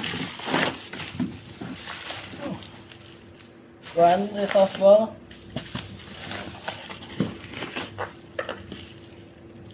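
Cardboard rustles and scrapes.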